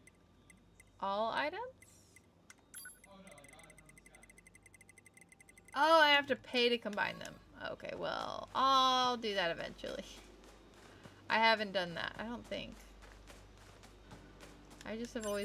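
A young woman speaks with animation close to a microphone.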